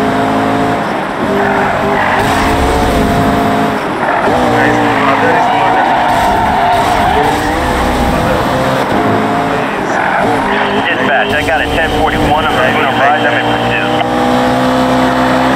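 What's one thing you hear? A sports car engine roars and shifts pitch as the car speeds along.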